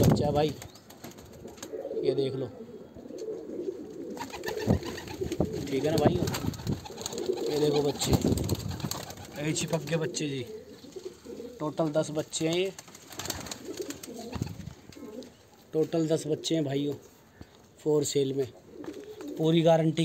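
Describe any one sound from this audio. Pigeons coo repeatedly close by.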